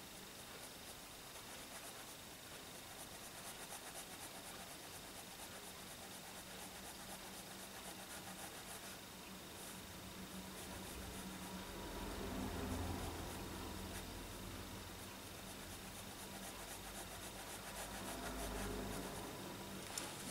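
A fine-tip pen scratches softly on paper.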